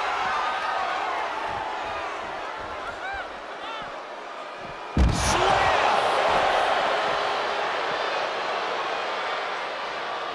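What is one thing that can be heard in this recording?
A large crowd cheers loudly in an arena.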